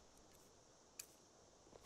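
A soft chime sounds as a menu opens.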